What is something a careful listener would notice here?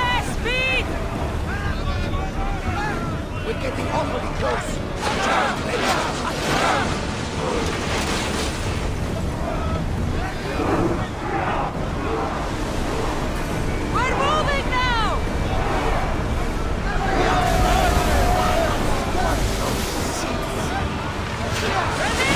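Waves wash and splash against a wooden ship's hull.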